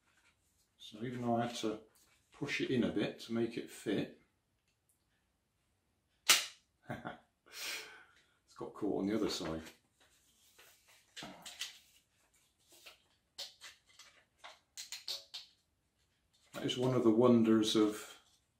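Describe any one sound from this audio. An older man speaks calmly, close by.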